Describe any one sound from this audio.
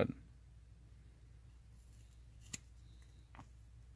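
Scissors snip through fur.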